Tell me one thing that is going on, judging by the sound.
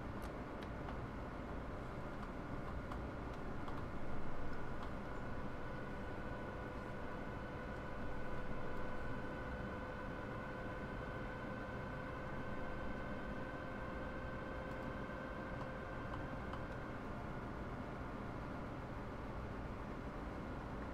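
Train wheels rumble low on the rails.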